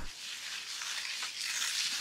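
A broom brushes over concrete.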